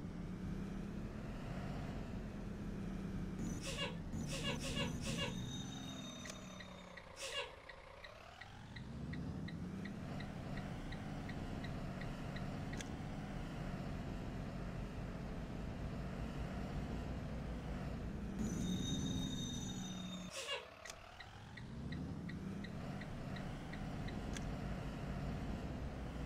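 A bus engine hums and rumbles, easing down as the bus slows and rising again as it speeds up.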